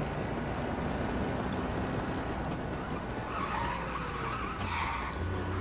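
An old car engine rumbles steadily as the car drives along.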